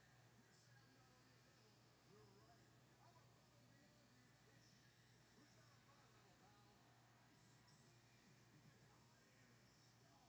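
A ceiling fan whirs steadily.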